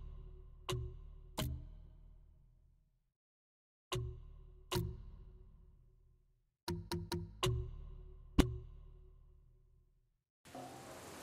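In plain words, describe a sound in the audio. Menu selection tones chime and slowly ring out.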